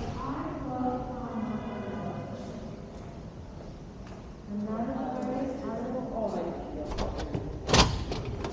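A man speaks calmly close by, his voice slightly muffled.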